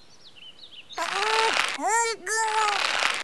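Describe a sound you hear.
A young woman grunts and strains loudly.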